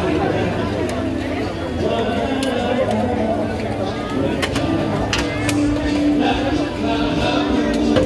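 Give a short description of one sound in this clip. A metal spatula scrapes and taps on a hot pan.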